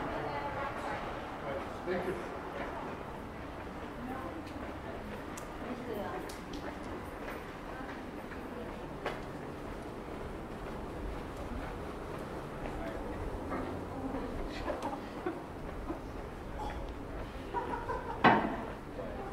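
Outdoors, a low murmur of a town fills the air.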